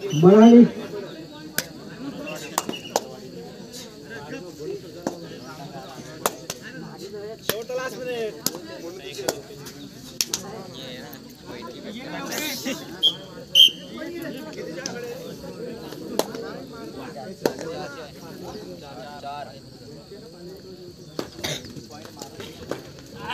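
Young men call out to each other as they play.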